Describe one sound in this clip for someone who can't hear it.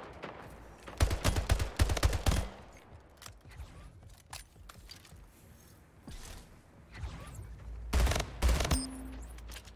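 Rifle shots fire in quick bursts.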